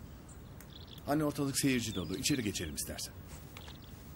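An elderly woman speaks calmly.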